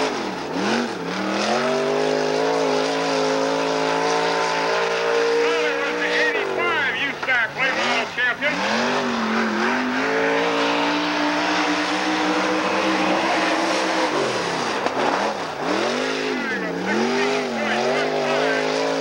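A race car engine roars loudly, revving up and down as it speeds past.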